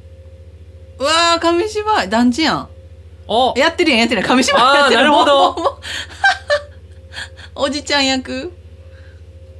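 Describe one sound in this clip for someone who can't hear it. A young woman talks casually close to a microphone.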